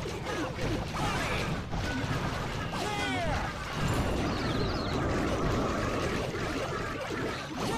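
Video game battle effects clash, crackle and thud without a break.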